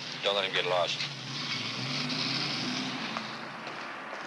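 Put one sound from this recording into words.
A car engine rumbles as the car drives past.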